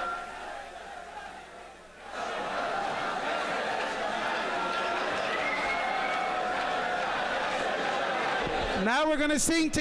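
A large crowd of men sings loudly in an echoing hall.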